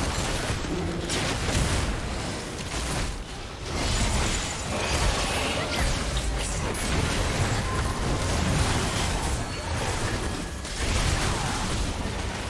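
Magic spells burst and clash in a fantasy battle.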